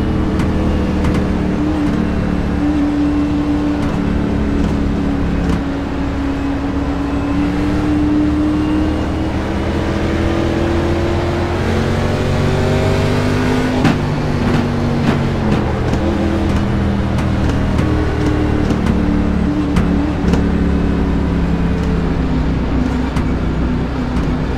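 A race car engine roars loudly at high speed with a steady drone.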